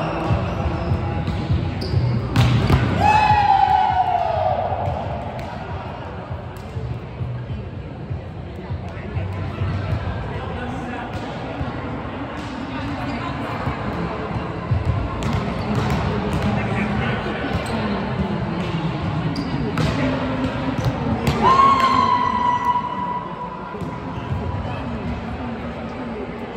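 Young adult men and women call out to each other across the court.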